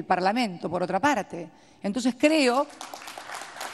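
A woman speaks with emotion into a microphone.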